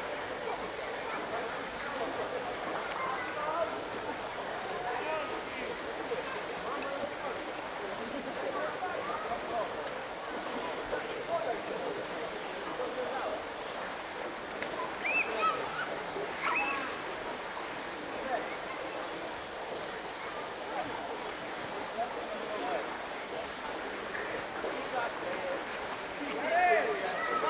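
Children shriek and call out while playing in water.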